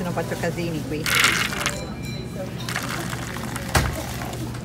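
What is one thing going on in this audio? Coffee pours into a paper cup.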